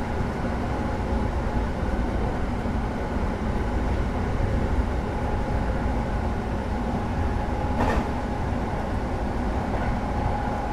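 Train wheels rumble and clatter over the rails.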